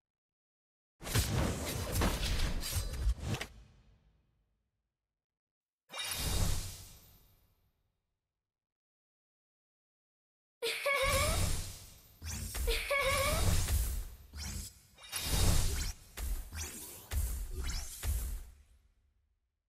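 Sword slashes and magic blasts crash in a video game battle.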